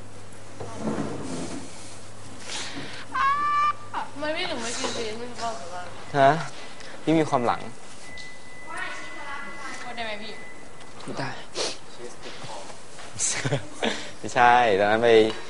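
Young people talk and call out around a table.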